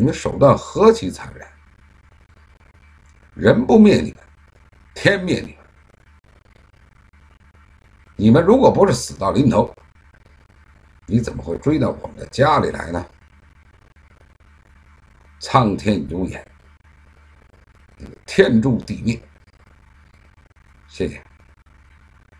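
A middle-aged man speaks calmly in short bursts, close to a microphone.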